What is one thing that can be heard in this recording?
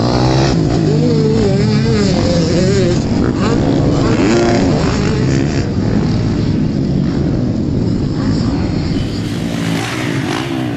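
Dirt bike engines rev and whine loudly nearby, rising and falling in pitch.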